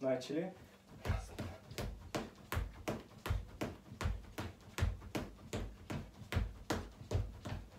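Sneakers tap quickly and rhythmically on a hard floor.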